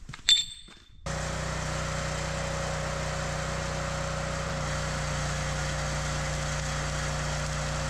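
A motor hums steadily and loudly.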